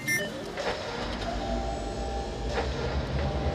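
A motorised platform hums steadily as it moves.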